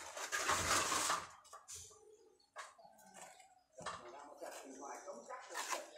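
A trowel spreads plaster on a concrete pillar with a rough scraping sound.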